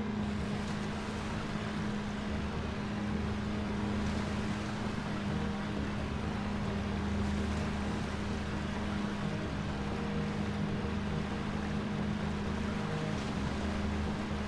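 A small vessel's motor hums steadily.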